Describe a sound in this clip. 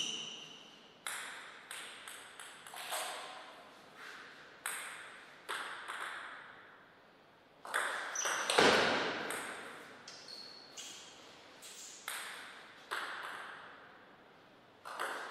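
A ping-pong ball bounces on the table before a serve.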